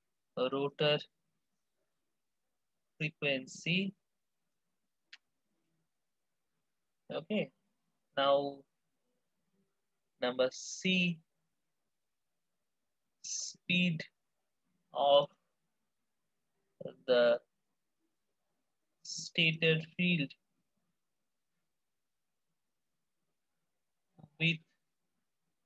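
A man explains calmly through a microphone, in short phrases with pauses.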